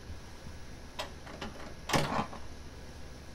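Small objects clatter as someone rummages through a shelf.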